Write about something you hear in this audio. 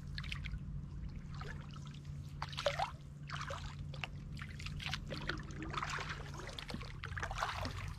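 Water splashes and gurgles softly against the bow of a small boat.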